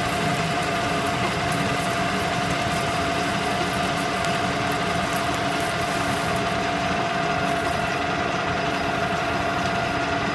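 Metal shavings scrape and rattle against the machine.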